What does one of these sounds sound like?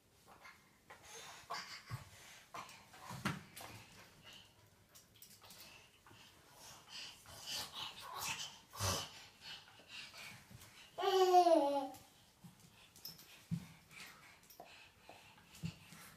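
A dog's paws patter on a hard floor.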